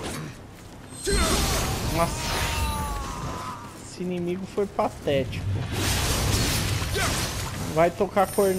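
Swords clash and slash with sharp whooshing bursts.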